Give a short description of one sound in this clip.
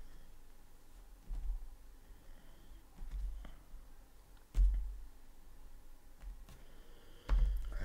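Cards are laid down softly on a table.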